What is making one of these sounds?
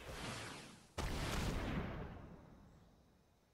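A shimmering magical whoosh sounds.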